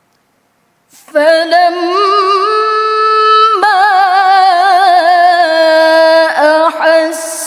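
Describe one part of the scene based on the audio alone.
A young woman chants in a long, wavering melodic voice through a microphone, echoing in a large hall.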